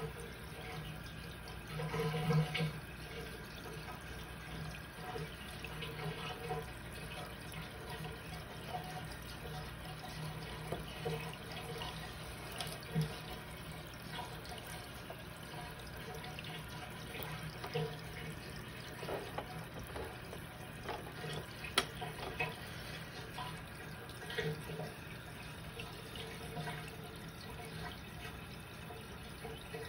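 Air bubbles gurgle and pop steadily in water.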